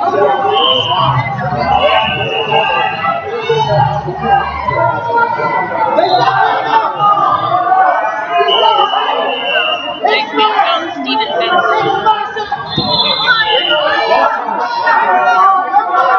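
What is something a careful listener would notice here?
A large crowd chatters and cheers, echoing through a large hall.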